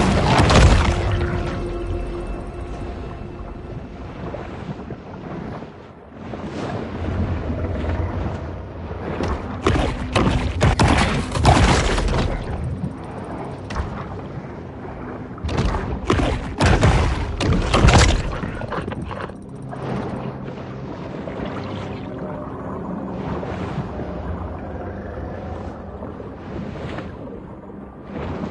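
Water rushes and churns dully around a swimming shark.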